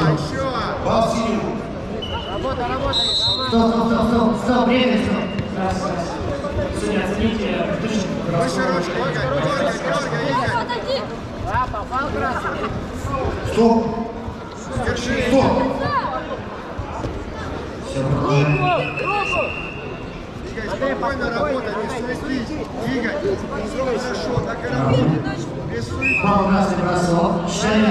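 Many voices of a crowd chatter and shout in a large echoing hall.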